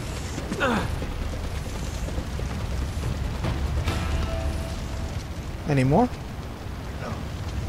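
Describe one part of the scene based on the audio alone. A fire crackles and roars steadily.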